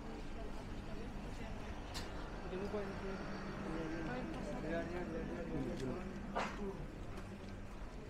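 Adults murmur and chat nearby.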